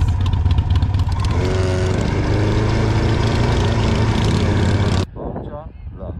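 A motorcycle engine rumbles steadily up close.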